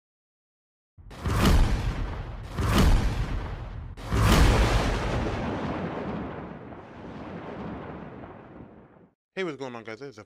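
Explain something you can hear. Thunder cracks loudly several times and rumbles away.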